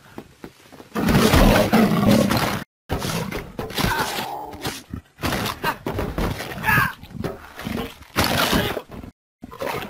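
A bear roars and growls fiercely.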